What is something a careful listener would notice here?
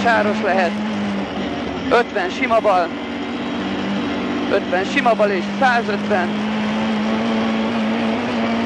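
A car engine roars steadily from inside the cabin.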